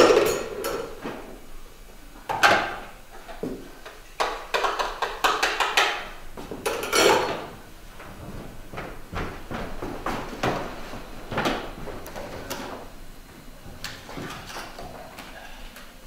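Objects clatter and knock as a woman handles them on a wooden stage.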